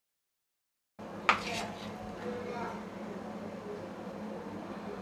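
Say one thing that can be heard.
A spoon scrapes softly against a metal bowl.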